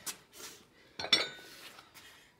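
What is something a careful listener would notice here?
A dumbbell thuds down onto stone paving.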